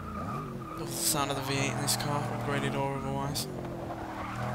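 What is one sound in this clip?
Tyres screech on tarmac through a sharp turn.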